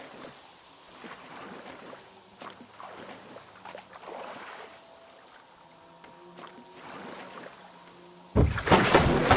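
A paddle dips and splashes softly in calm water.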